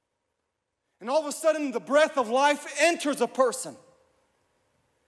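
A young man speaks with animation through a microphone.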